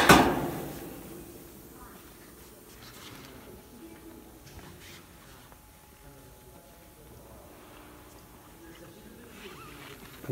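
A machine hums steadily in a large hall.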